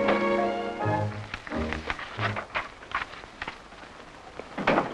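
Paper rustles as sheets are handled.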